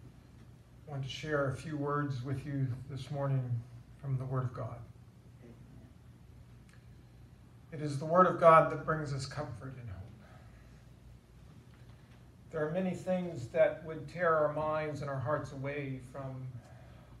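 A man speaks slowly and solemnly through a microphone in a room with some echo.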